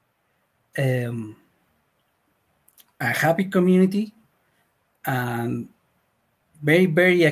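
A young man speaks calmly in short phrases over an online call.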